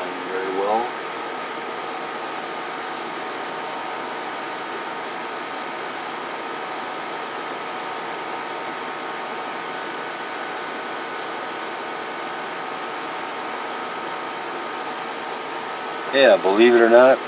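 A cooling fan hums steadily.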